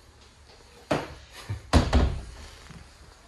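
A door latch clicks and a door opens with a knock.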